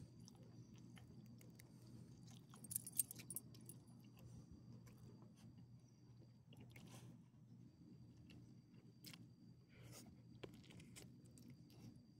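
A small dog sniffs at the ground.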